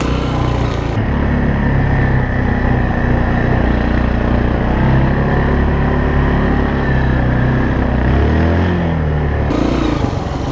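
A quad bike engine drones steadily.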